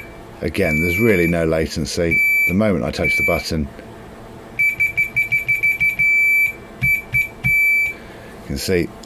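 An electronic device beeps in short bursts and longer tones.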